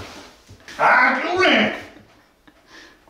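A man laughs loudly and excitedly close by.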